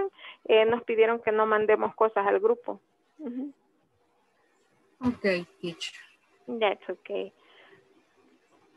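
A woman speaks calmly through an online call, in short bursts.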